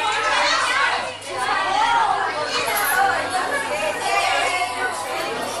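A group of women talk and laugh loudly together, close by.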